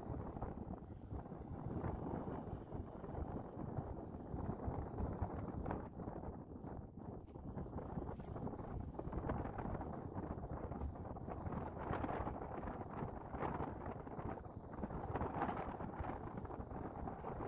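Wind blows across the open mountainside.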